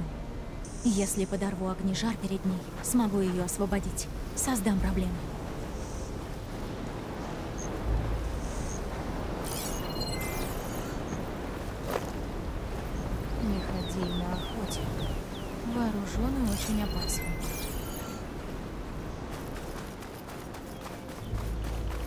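Footsteps run across soft sand.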